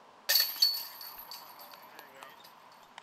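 A disc strikes metal basket chains, which jangle and ring out.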